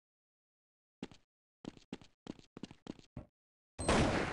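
Footsteps clatter on a hard floor.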